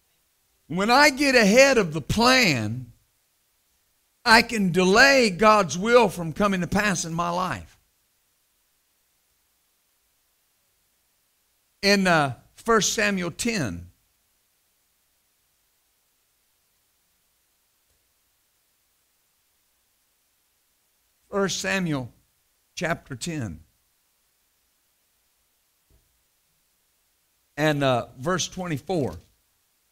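A middle-aged man preaches with animation through a microphone, with long pauses.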